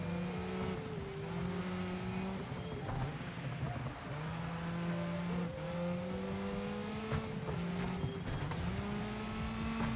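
Rain patters against a car windscreen.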